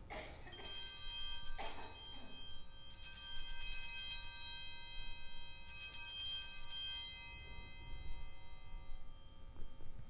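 A small bell rings out three times in a reverberant hall.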